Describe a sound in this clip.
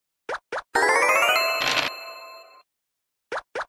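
A bright chiming flourish rings out and fades.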